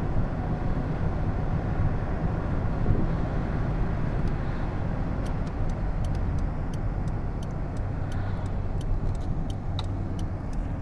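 A car engine hums steadily while driving, heard from inside the car.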